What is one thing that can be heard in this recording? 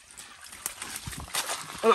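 Muddy water pours and splashes from a bucket.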